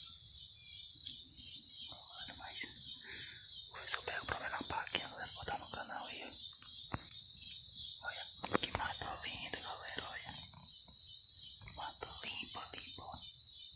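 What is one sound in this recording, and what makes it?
Footsteps crunch and rustle through dry leaves and twigs.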